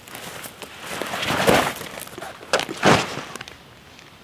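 A backpack thumps down onto the ground.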